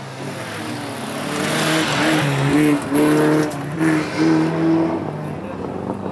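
A racing car engine roars loudly as the car speeds past close by.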